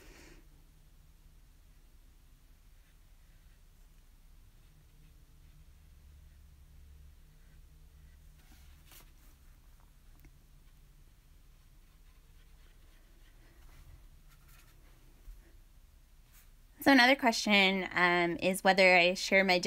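A paintbrush softly brushes across paper.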